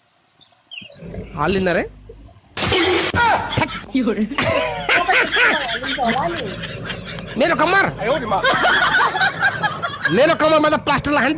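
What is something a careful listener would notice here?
A young woman talks with animation over an online call.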